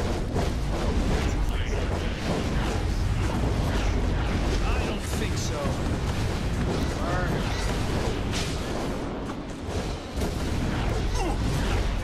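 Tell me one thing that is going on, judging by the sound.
Game blasts and impacts crackle and boom.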